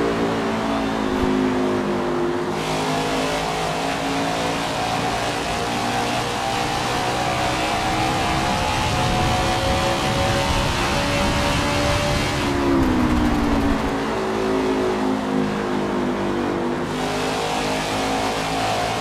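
A race car engine roars loudly, its pitch rising as it speeds up and dropping as it slows into a turn.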